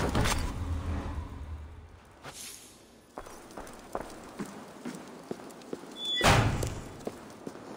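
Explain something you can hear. A torch fire crackles softly.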